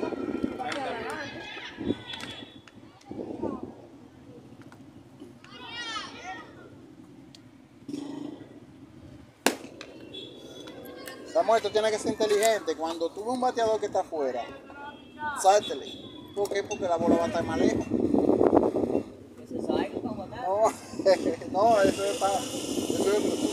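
Young players call out and talk loudly outdoors, some close and some farther off.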